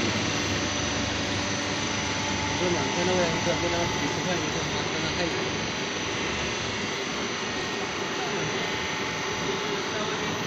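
A wire spool spins with a soft whirring.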